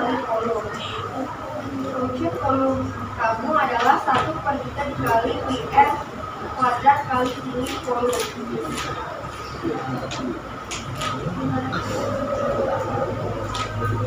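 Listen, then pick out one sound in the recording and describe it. Young women read out together at a distance in an echoing room.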